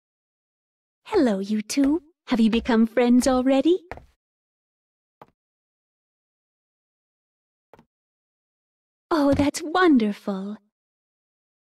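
A young woman speaks softly and warmly.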